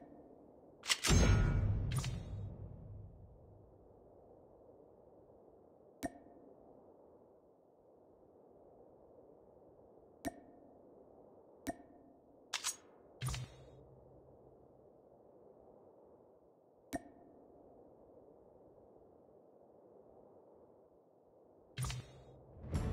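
Short sharp menu clicks sound now and then.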